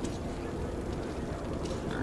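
A pig snuffles and grunts while eating.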